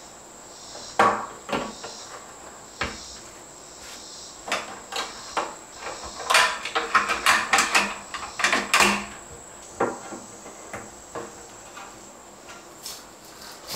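Tools tap and knock against wooden studs.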